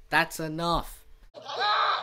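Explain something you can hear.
A young girl speaks angrily.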